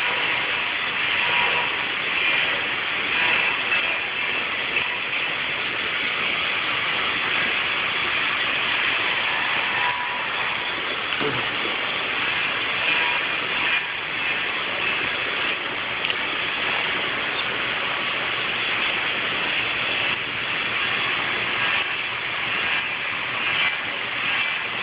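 A machine whirs loudly and steadily.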